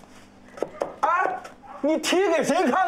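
A young man speaks loudly and scolds nearby.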